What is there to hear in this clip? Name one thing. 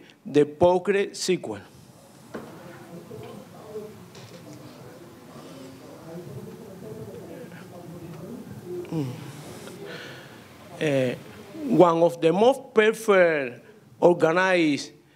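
A man speaks through a microphone in a hall, presenting steadily with pauses.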